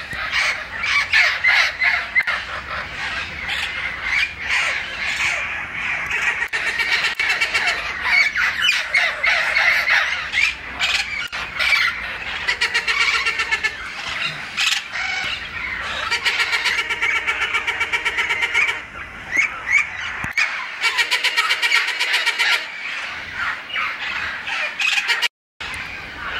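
Many parrots squawk and chatter loudly outdoors.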